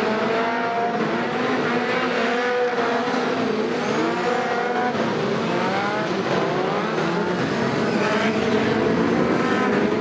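Several racing car engines roar close by, revving up and down throughout.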